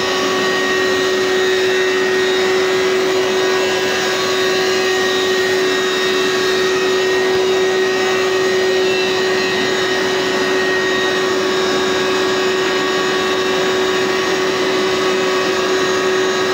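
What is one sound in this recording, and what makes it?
A carpet cleaner's motor whines loudly and steadily.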